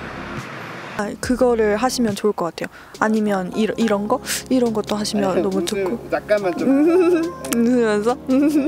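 A young woman talks brightly and animatedly into a close microphone.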